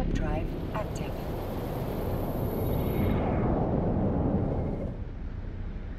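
A spaceship arrives with a rushing whoosh.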